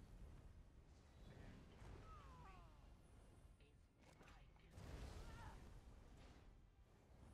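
Magic spells crackle and boom in a fight.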